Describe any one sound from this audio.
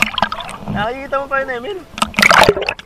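A young man calls out loudly over the water.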